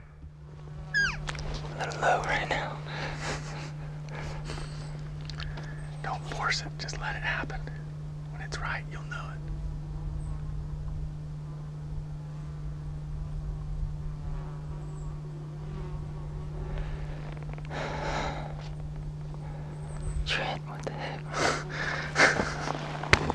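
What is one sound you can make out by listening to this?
A man speaks quietly and with animation, close by.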